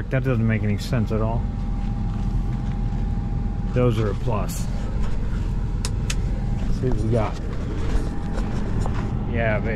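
An engine idles with a low, steady rumble.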